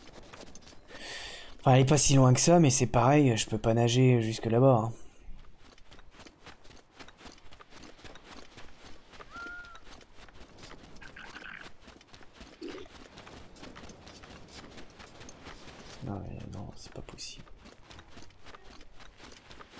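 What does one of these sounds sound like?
Quick footsteps crunch on sand.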